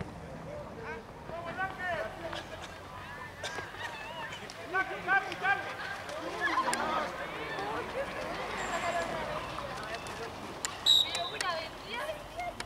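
Young men shout and call out to each other outdoors at a distance.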